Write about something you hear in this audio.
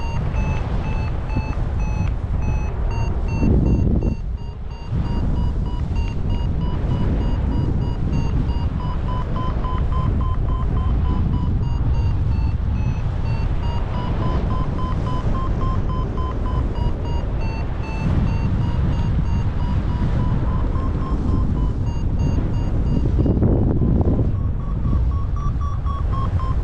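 Wind rushes loudly and steadily past, outdoors in flight.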